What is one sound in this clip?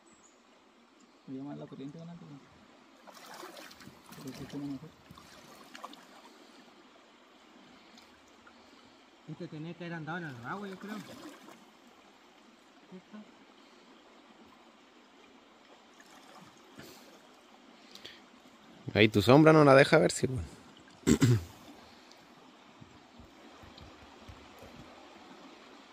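Shallow water ripples and flows steadily outdoors.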